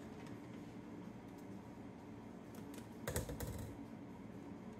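Scissors snip through a plastic packet.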